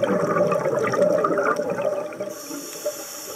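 Air bubbles gurgle and burble loudly from a diver's regulator underwater.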